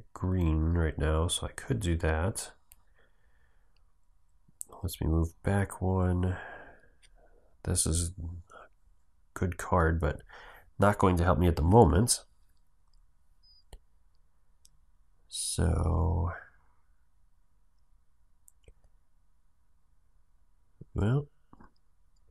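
A young man speaks calmly and close to a microphone, in short bursts with pauses.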